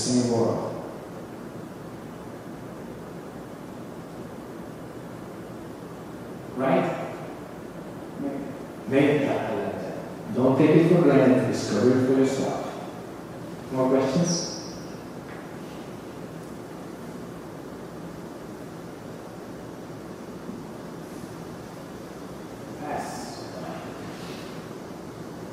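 A man speaks calmly into a microphone, in short bursts with long pauses.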